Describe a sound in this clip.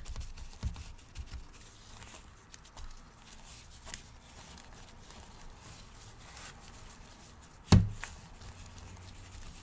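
Gloved hands rustle as they rub a wax candle.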